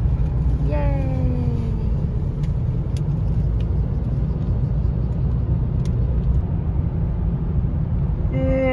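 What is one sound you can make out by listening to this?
A car's road noise rumbles steadily from inside the car.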